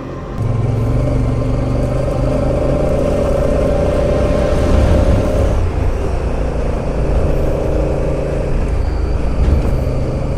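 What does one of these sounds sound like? Tyres crunch and rumble on gravel.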